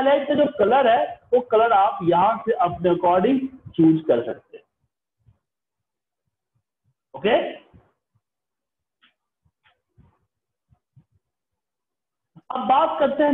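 A man speaks calmly and explains into a microphone, with pauses.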